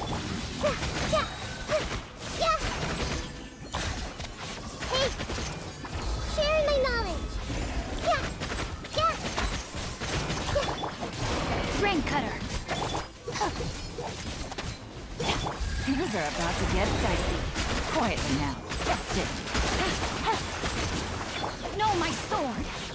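Magical blasts boom and whoosh in a video game battle.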